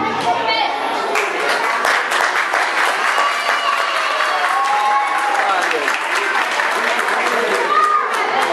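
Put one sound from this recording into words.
A woman claps her hands.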